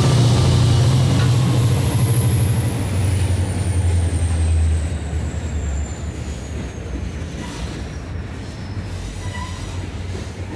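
Train wheels squeal with a high, slowly falling whine.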